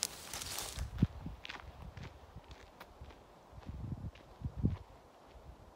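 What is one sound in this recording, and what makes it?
Footsteps crunch on a dirt path and fade into the distance.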